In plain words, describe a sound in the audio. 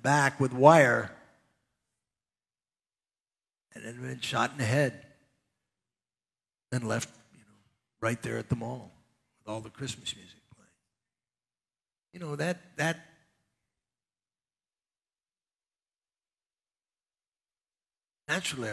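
An elderly man speaks with animation through a headset microphone, pausing often.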